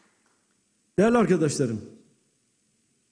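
A man speaks into a microphone in a big hall.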